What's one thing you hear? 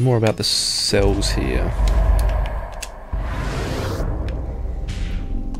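A deep magical whoosh rumbles as a portal teleports a figure.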